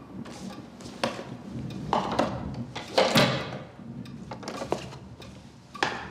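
A door opens slowly.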